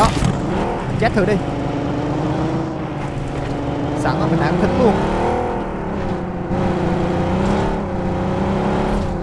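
A car engine hums and revs as the car drives over rough ground.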